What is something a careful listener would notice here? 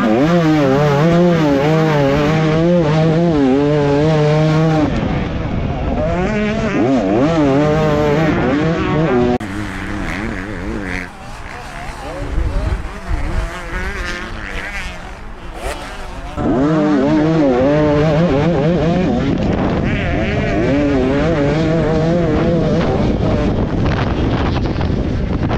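A dirt bike engine roars up close, revving hard and rising and falling in pitch with each gear change.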